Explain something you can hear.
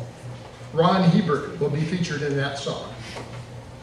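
An elderly man speaks into a microphone over a loudspeaker.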